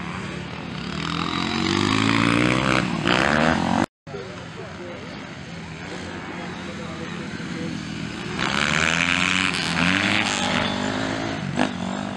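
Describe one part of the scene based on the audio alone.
A dirt bike engine roars close by as it accelerates past.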